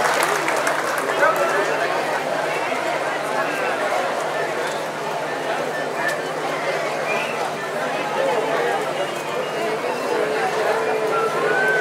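A large audience chatters and murmurs nearby.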